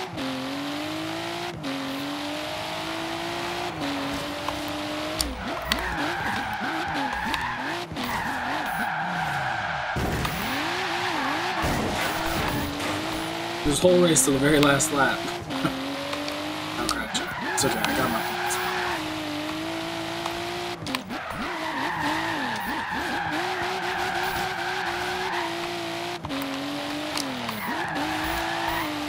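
A car engine roars and revs up and down through gear changes.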